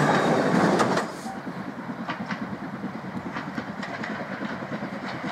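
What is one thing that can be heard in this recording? A steam locomotive chuffs steadily in the distance.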